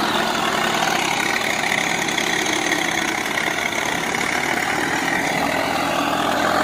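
A tractor engine rumbles steadily.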